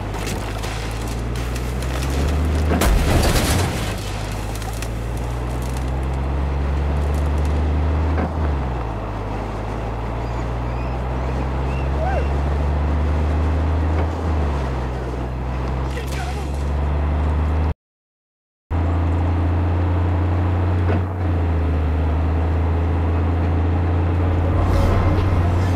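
A truck engine drones loudly and steadily, dipping briefly as gears shift.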